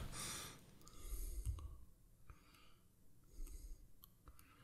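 A man speaks quietly and briefly into a microphone.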